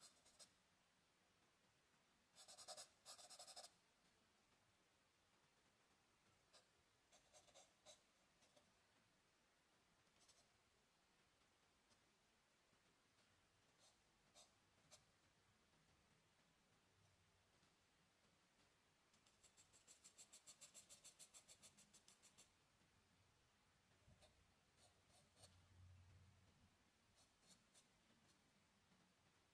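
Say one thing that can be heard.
A pencil scratches and hatches softly on paper in short strokes.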